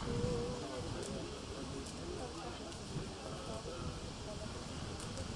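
An elderly man talks calmly outdoors, close by.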